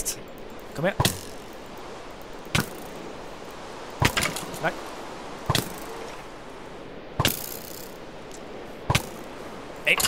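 A sword strikes repeatedly with sharp hits.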